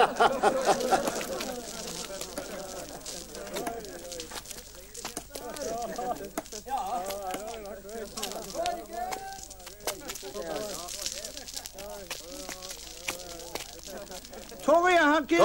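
A crowd of men talk and murmur outdoors.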